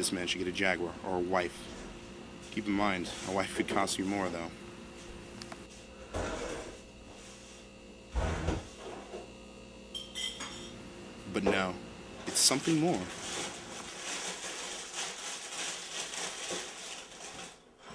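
A cereal box rustles as cereal pours into a bowl.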